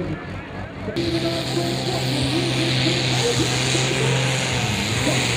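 A powerful tractor engine roars loudly nearby.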